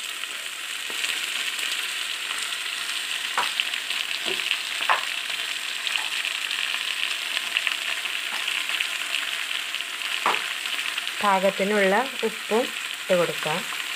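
Onions sizzle and crackle softly in hot oil.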